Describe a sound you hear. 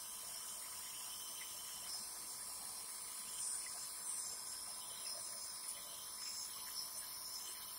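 A man breathes in and out through a nebulizer mouthpiece.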